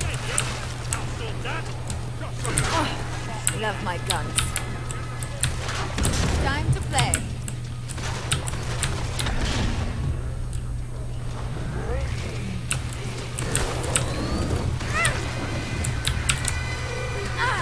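Shells click as they are loaded into a shotgun.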